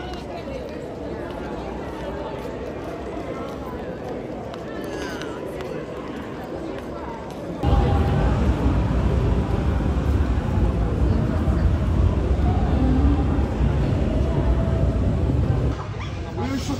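Young people chatter and talk on a busy street at night.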